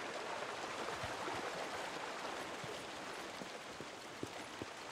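Footsteps crunch on gravel and concrete at a walking pace.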